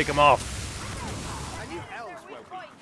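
A weapon fires with a burst of crackling sparks.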